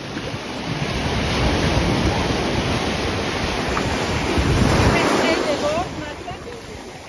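Waves wash and break loudly onto the shore.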